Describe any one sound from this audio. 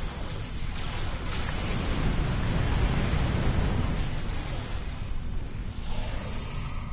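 Laser fire crackles in rapid bursts.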